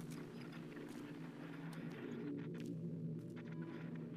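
Footsteps scuff slowly on a hard floor.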